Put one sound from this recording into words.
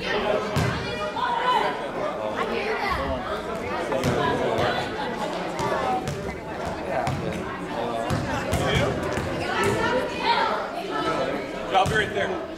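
Basketballs bounce on a hard floor with echoing thuds.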